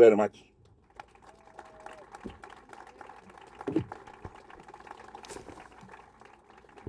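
A small crowd claps.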